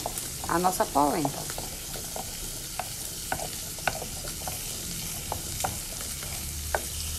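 A wooden spoon scrapes and taps against a pot while stirring a thick sauce.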